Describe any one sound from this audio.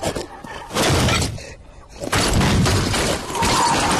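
A large boulder rolls and thuds onto sandy ground.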